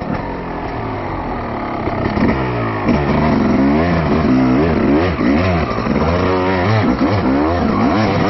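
A dirt bike engine revs up and down repeatedly, close by.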